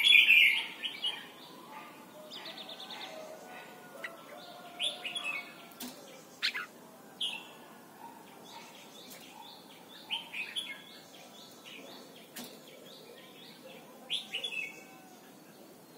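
A caged songbird chirps and trills in short bursts, close by.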